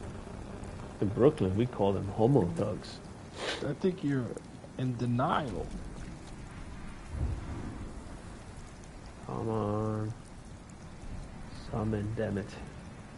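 A young man talks close to a microphone in short bursts.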